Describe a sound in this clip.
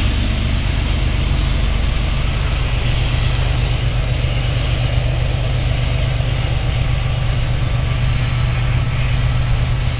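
Freight cars roll by, wheels clacking on the rails.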